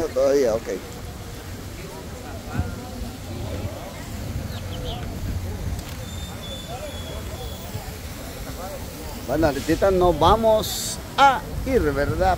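People chatter in the distance outdoors.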